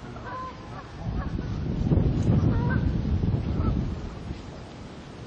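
Wind gusts and rumbles across the microphone outdoors.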